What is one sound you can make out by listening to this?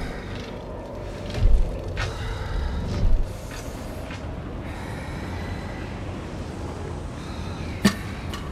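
A lightsaber hums steadily.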